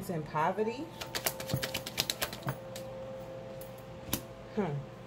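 Playing cards are shuffled and flicked with quick, papery snaps.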